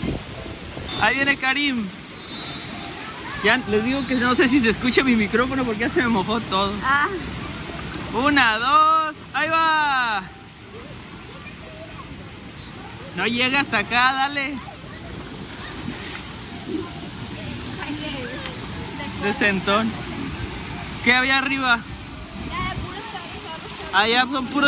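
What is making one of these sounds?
A young child shouts and squeals excitedly nearby.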